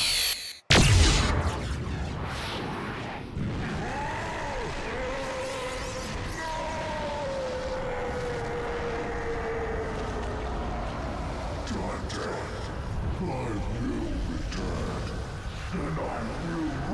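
Energy crackles and roars loudly.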